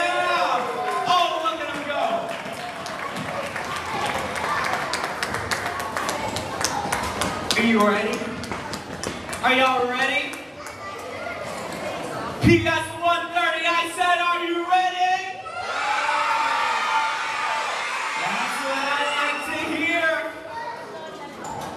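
An audience chatters and calls out.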